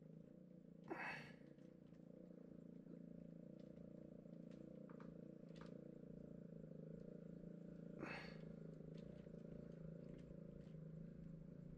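Fingers press and rub against soft clay with faint, quiet taps.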